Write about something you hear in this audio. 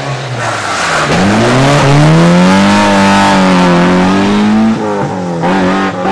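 A second rally car approaches with a rising engine roar and accelerates away.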